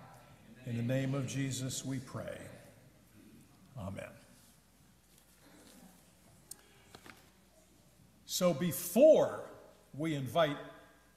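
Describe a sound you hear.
An elderly man speaks slowly and earnestly into a microphone, with pauses, in a room with a slight echo.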